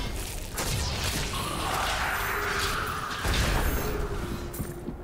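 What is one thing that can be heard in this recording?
Magical blasts whoosh and crash in quick bursts.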